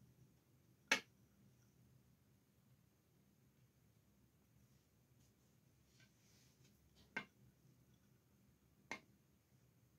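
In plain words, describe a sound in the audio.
A bowl knocks against a metal plate.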